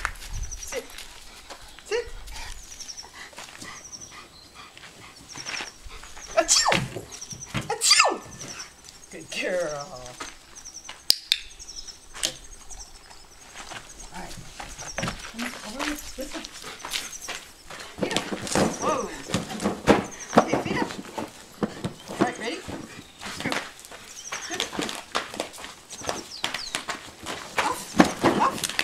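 A woman speaks encouragingly to a dog nearby, outdoors.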